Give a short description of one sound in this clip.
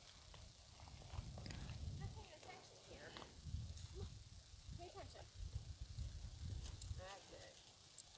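A horse's hooves thud softly on the ground as it trots.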